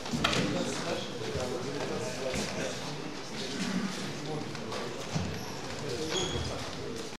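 A crowd of spectators chatters in a large echoing hall.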